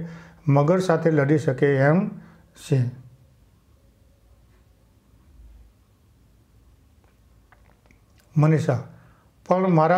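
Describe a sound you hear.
An elderly man reads out calmly, close to a microphone.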